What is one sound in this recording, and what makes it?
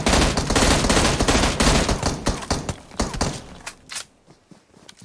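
Gunfire and explosions crackle loudly in a video game.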